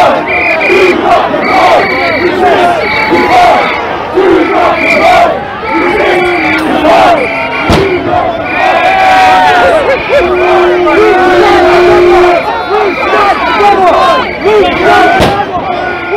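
A large crowd of men and women shouts and jeers loudly outdoors.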